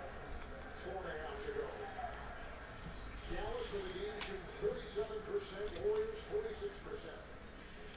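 A foil card wrapper crinkles as it is torn open.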